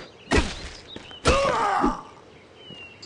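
Blades clash and strike hard in a fight.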